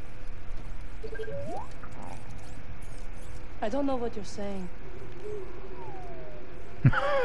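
A small robot beeps and warbles in a rising, chirping tone.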